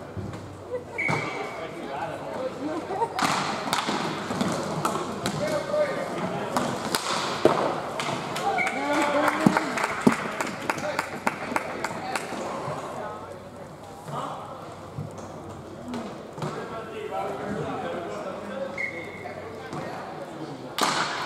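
Hockey sticks clack against a ball and each other.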